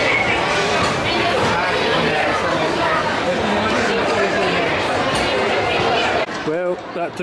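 A crowd of passengers chatters loudly under an echoing roof.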